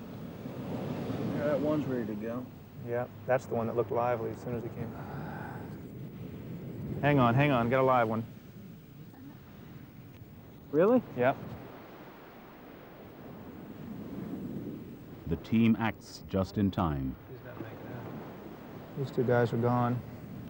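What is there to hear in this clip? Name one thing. Hands dig and scrape in loose sand.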